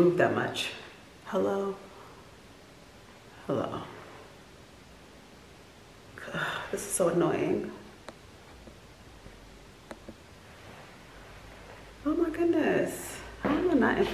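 A young woman speaks calmly and close, in short bursts with pauses.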